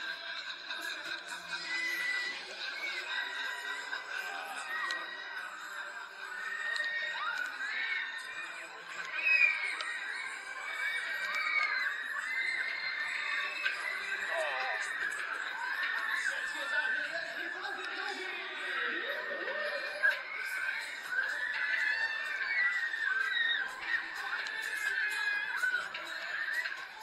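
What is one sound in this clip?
Loud dance music blares through outdoor loudspeakers.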